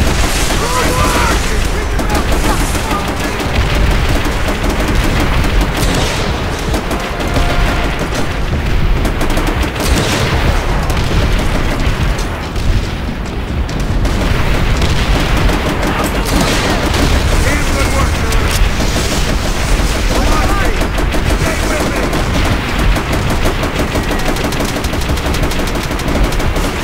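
Explosions boom and rumble all around.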